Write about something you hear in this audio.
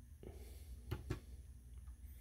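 A knob clicks softly as it is turned.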